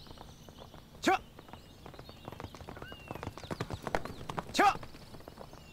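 A horse neighs loudly.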